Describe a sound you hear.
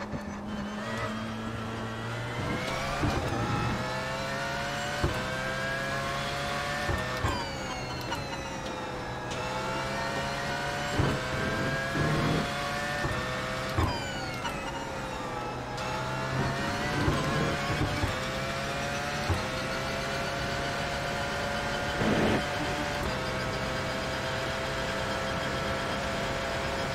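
A racing car engine roars, rising in pitch through each gear and dropping sharply at each gear change.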